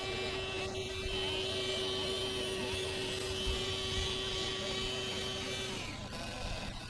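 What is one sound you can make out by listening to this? The electric motor of a radio-controlled model warship whines as it cruises across water.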